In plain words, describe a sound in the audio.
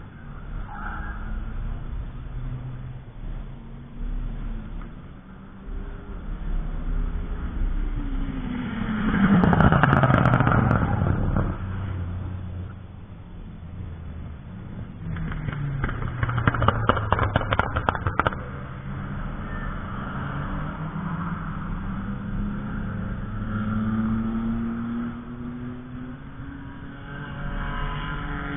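Wind blows across an open space outdoors.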